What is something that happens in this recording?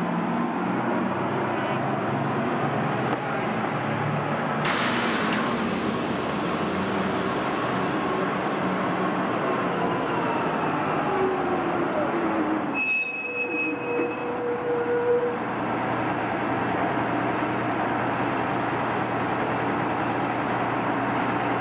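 City buses idle and rumble in street traffic.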